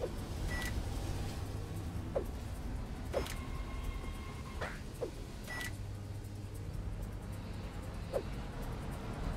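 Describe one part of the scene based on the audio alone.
Short electronic blips from a video game sound now and then.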